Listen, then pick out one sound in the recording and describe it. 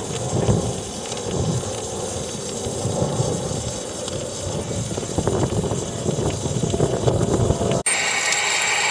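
A coal fire rumbles softly inside a locomotive's firebox.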